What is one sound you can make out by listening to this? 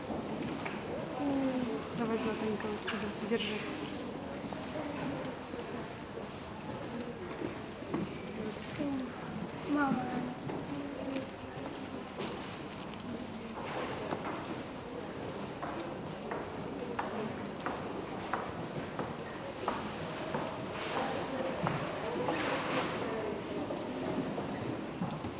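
Women and children talk softly nearby in an echoing hall.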